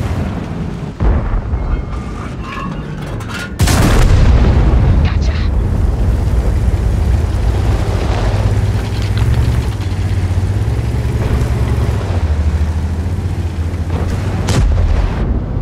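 A tank cannon fires with a sharp boom.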